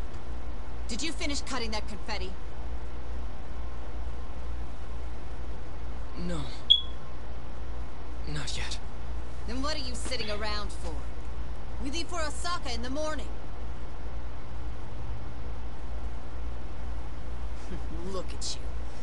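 A young woman speaks sharply and indignantly.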